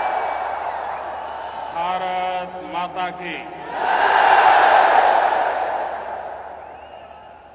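A large crowd cheers loudly in a huge echoing arena.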